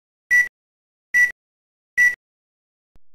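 A short, high electronic beep sounds three times, about once a second.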